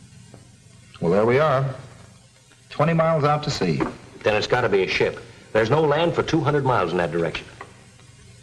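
A man speaks calmly and closely.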